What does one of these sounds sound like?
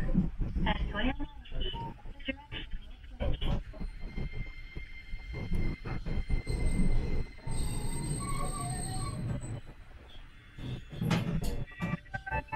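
Metal clicks and knocks sound as a tram crosses rail joints.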